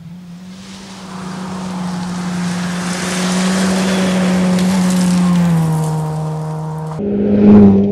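Gravel sprays and rattles under a car's tyres.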